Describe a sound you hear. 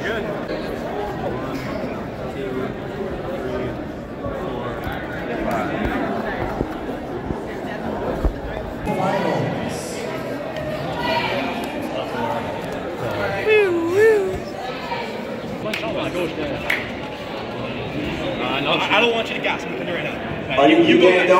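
A crowd of young men chatters and cheers loudly in a large echoing hall.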